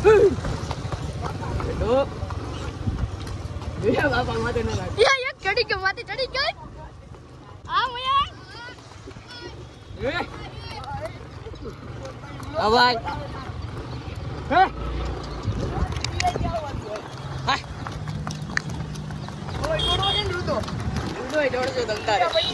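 A horse's hooves clop on packed dirt.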